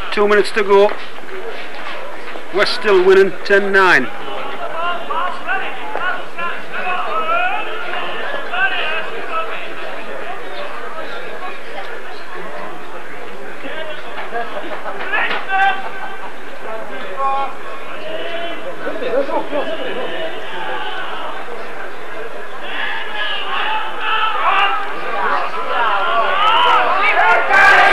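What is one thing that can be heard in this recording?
Men talk and call out outdoors, some distance off.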